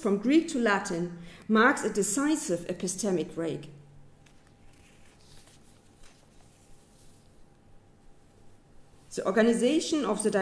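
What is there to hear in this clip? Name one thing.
A woman speaks calmly into a microphone in a large room, pausing now and then.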